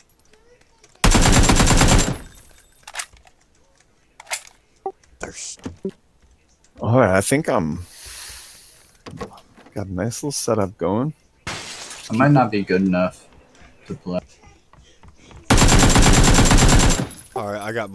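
A rifle fires rapid, loud bursts indoors.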